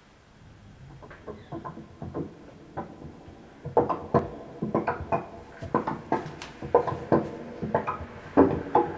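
A synthesizer plays rhythmic, plucked electronic notes that grow steadily louder.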